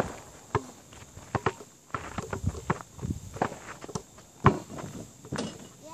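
Basketballs bounce with sharp thumps on hard ground outdoors.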